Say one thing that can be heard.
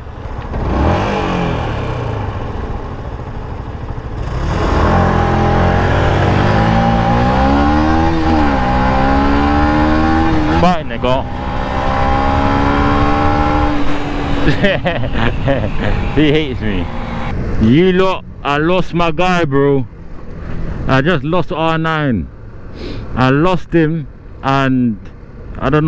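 A motorcycle engine hums and revs up and down as it rides along.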